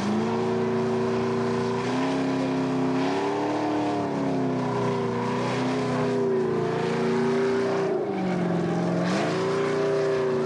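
Tyres screech as they spin on the ground.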